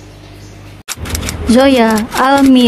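A young girl calls out cheerfully and loudly.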